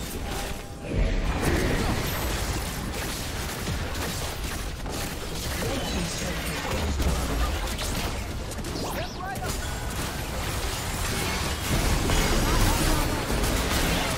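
Game spells and attacks crackle, blast and clash in a fight.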